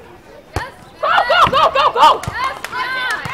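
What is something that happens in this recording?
Young women cry out excitedly nearby, outdoors.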